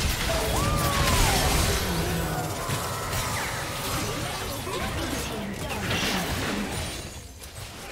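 Game spell effects whoosh and crash in a busy battle.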